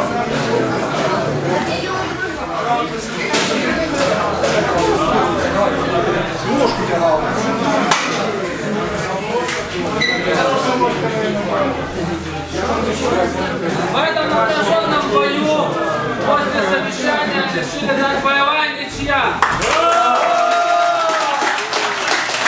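A crowd of men chatters loudly all around in an echoing hall.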